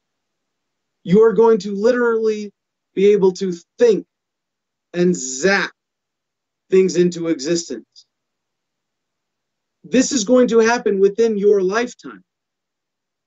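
A man speaks emphatically into a close microphone, in short bursts with pauses.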